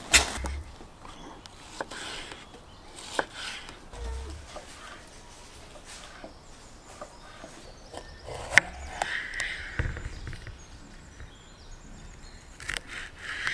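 A knife cuts through crisp peppers on a wooden board with sharp taps.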